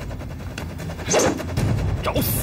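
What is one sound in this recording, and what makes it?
A blade swishes sharply through the air.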